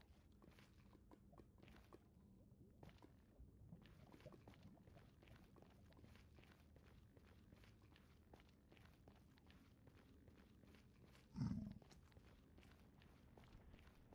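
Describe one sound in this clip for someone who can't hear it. Footsteps crunch steadily over stone.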